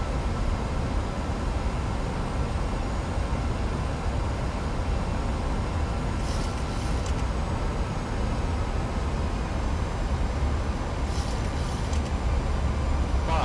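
A young man speaks calmly into a headset microphone.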